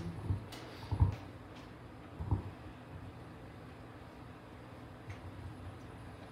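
Footsteps thud softly on a floor nearby.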